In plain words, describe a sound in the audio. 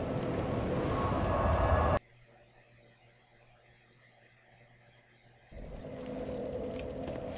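A fire crackles and hisses steadily.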